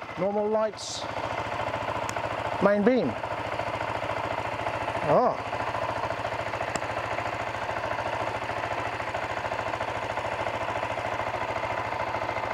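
A motorcycle engine idles steadily.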